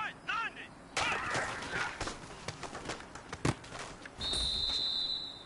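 Football players thud and clatter as they collide in a play.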